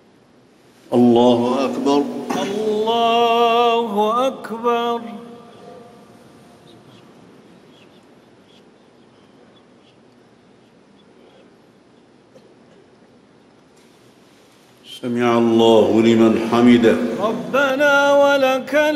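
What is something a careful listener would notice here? A man chants in long, drawn-out phrases over loudspeakers in a large echoing hall.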